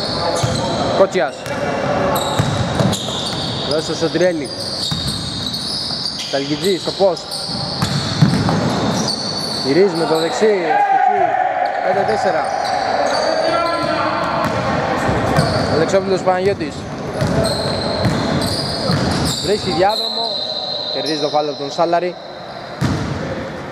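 Young men shout to each other in a large echoing hall.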